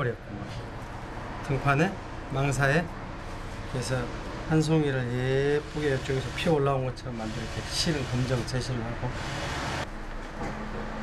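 An older man speaks with animation close by.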